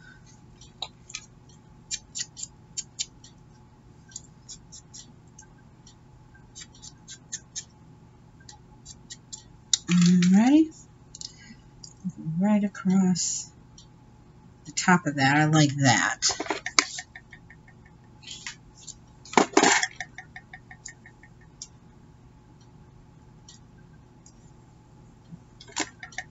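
Paper crinkles and rustles as it is handled up close.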